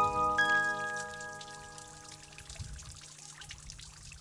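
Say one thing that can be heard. Raindrops patter on wet rock.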